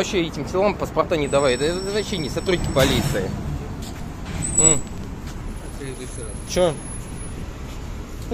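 An elderly man answers nearby.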